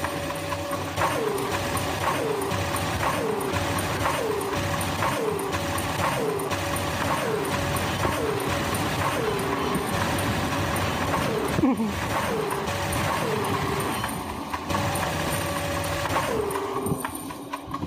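Video game weapons fire in quick, repeated bursts.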